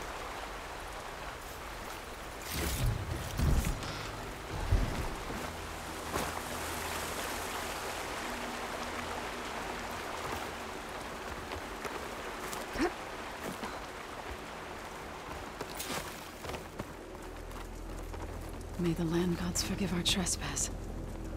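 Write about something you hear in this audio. A shallow stream trickles and babbles nearby.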